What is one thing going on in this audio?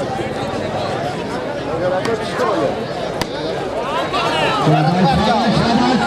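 Men in a crowd shout and cheer with excitement.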